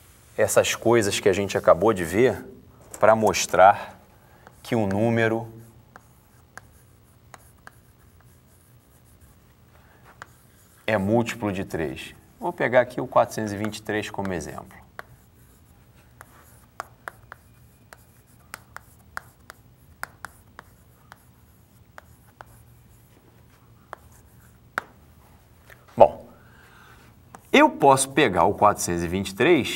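A man speaks calmly, close by, as if lecturing.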